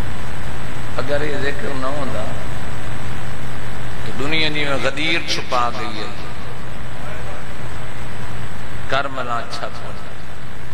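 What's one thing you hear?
A man speaks forcefully through a microphone and loudspeakers, in short phrases with pauses.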